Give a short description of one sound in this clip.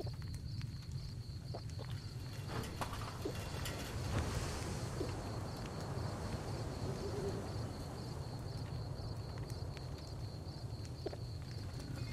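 A man gulps a drink from a bottle.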